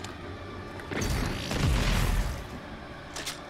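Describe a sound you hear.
A gun fires with a loud, roaring blast.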